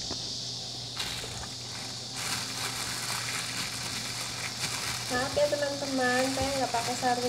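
Plastic wrap crinkles and rustles as it is handled.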